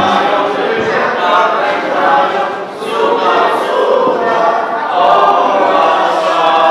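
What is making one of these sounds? Children chatter together in a lively room.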